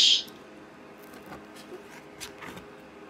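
A finger turns the thick cardboard page of a board book.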